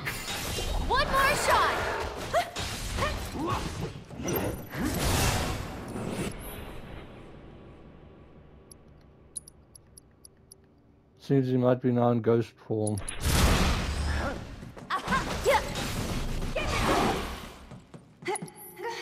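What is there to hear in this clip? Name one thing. Swords clash and slash with sharp metallic hits.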